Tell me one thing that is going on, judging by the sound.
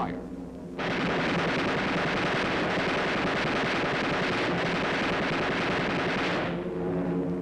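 Aircraft engines roar loudly.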